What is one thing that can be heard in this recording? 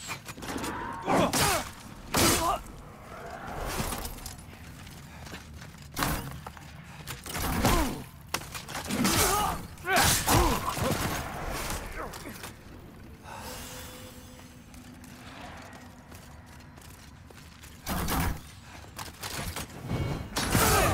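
Metal weapons swing and strike hard in a fight.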